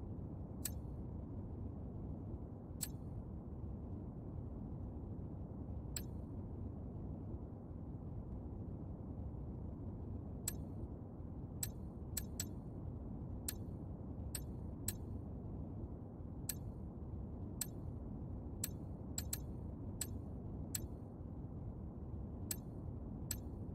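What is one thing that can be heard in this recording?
Short, sharp menu clicks tick now and then, quickening toward the end.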